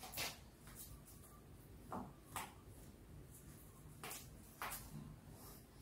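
Light taps and knocks sound on wood.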